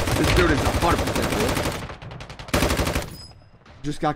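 Rapid gunfire rattles loudly in a video game.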